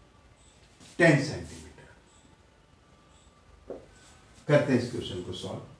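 A middle-aged man speaks calmly nearby.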